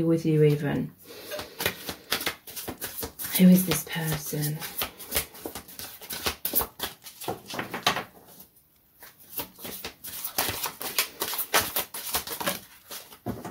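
Playing cards are shuffled, riffling and clicking close by.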